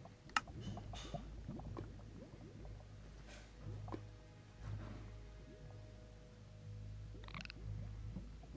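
Lava bubbles and pops over a low rumble.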